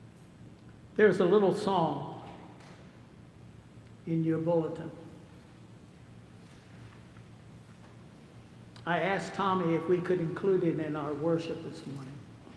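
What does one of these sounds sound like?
An elderly man speaks slowly and solemnly into a microphone in a large echoing hall.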